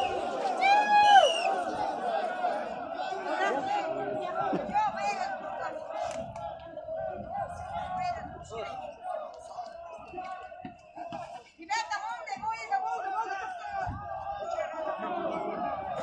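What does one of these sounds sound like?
A crowd of men chants and sings loudly outdoors.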